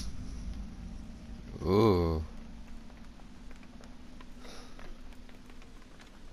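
A fire crackles in a metal barrel.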